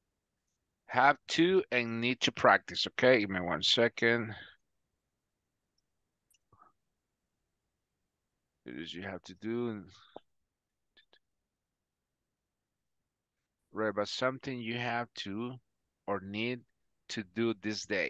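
A man speaks calmly over an online call, with pauses.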